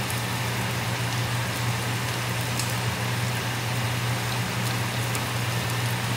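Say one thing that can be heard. Milk pours and splashes into a pan.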